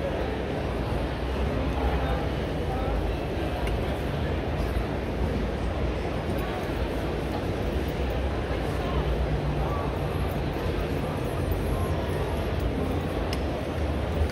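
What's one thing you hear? A crowd murmurs throughout a large echoing hall.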